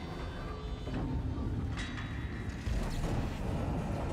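An electronic panel beeps.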